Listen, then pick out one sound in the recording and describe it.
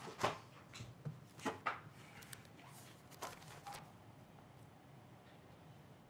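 Pages of a document turn and rustle.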